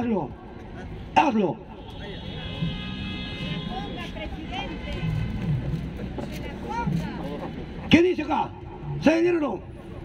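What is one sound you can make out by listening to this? An elderly man speaks forcefully into a microphone through a loudspeaker, outdoors.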